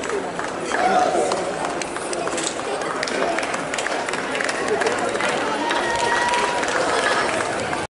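Spectators chatter and cheer nearby outdoors.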